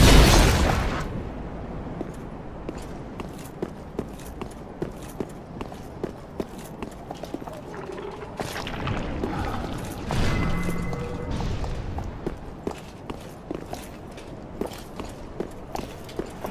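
Armoured footsteps clatter quickly on stone.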